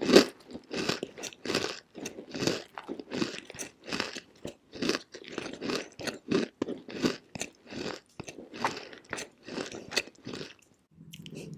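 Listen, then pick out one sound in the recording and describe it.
A young woman makes soft, wet mouth sounds close to a microphone.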